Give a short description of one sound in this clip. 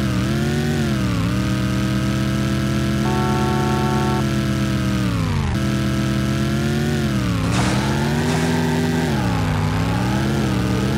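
A car engine roars steadily, its pitch rising and dipping as the car speeds up and slows.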